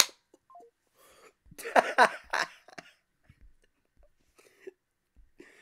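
A teenage boy laughs loudly and breathlessly close to a microphone.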